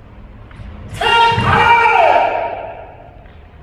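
A man lets out a loud, long shout in a large echoing hall.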